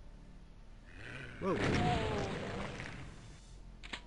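A shotgun fires with loud blasts.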